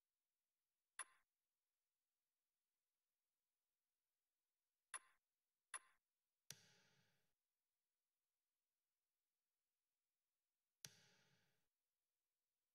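Short electronic menu blips and chimes sound a few times.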